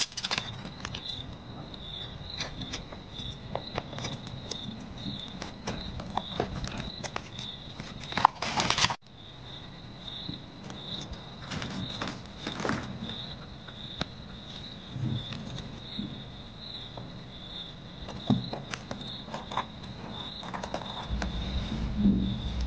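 Paper pages rustle and tap under fingers.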